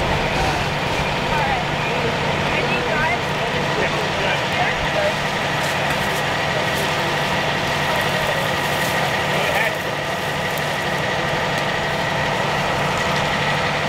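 An engine hums steadily nearby.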